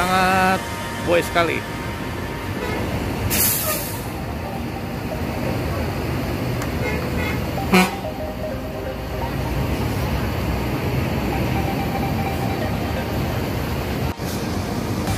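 A large bus engine rumbles steadily as the bus pulls slowly forward.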